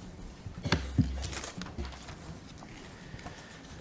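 Paper rustles as a woman handles sheets.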